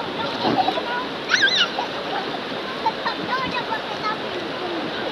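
A shallow stream rushes steadily over stones.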